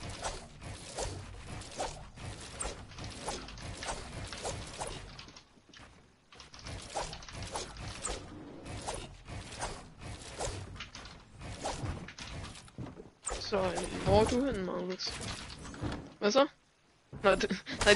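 Wooden planks clack rapidly as walls are built and edited.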